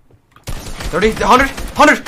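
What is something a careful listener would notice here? Gunfire cracks in a video game.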